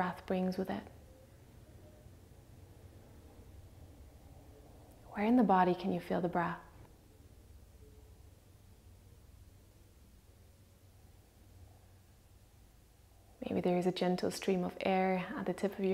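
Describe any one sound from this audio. A woman speaks slowly and calmly, close by, with long pauses.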